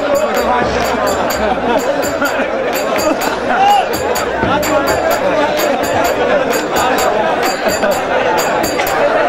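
A frame drum is beaten in a steady rhythm.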